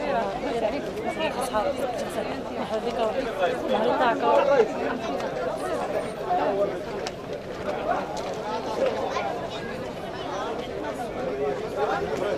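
A crowd of men and women chatter at close range.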